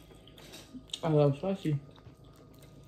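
A young woman hums through a mouthful of food.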